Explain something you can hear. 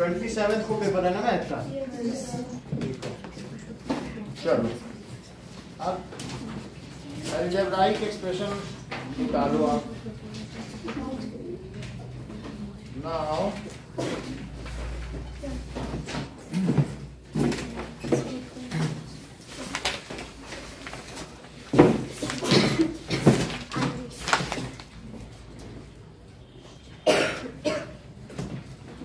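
A man speaks calmly, close by, in a lecturing tone.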